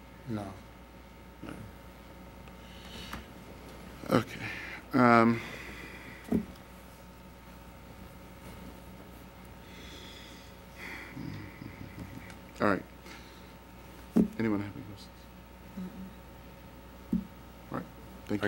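An elderly man speaks into a microphone in a large room, in short bursts with pauses.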